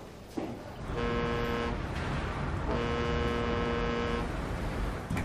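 A ship's horn blows in long, low blasts across the water.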